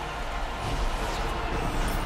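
A magic blast bursts with a whoosh.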